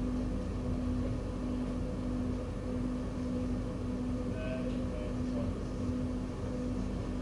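Train wheels rumble and clack on the rails.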